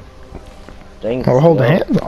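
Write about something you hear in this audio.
A man grunts loudly with effort.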